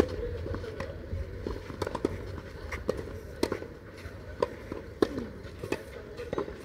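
Tennis balls bounce on a clay court.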